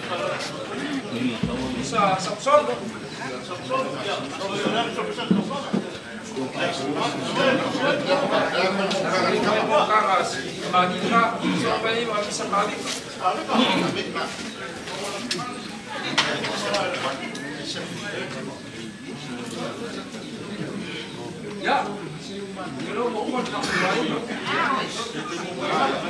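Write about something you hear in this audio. An elderly man speaks aloud outdoors.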